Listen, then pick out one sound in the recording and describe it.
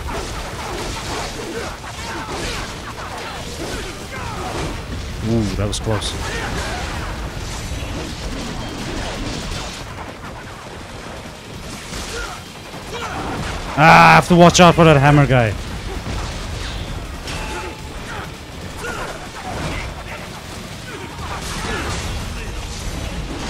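Swords clang and slash rapidly.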